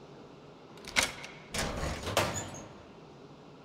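A metal locker door clanks open.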